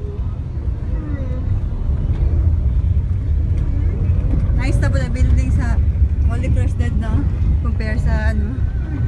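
A car rumbles steadily as it drives.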